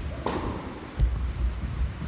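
A tennis racket strikes a ball with a sharp pop in a large echoing hall.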